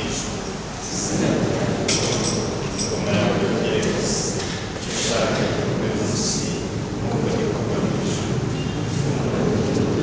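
A man speaks calmly and clearly through a microphone.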